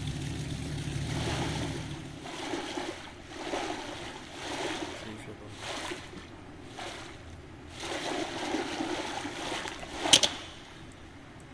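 Water splashes as a swimmer strokes along.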